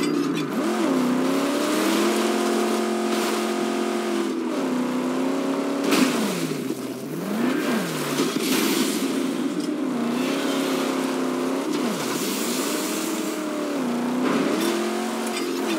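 Tyres crunch and skid on loose dirt.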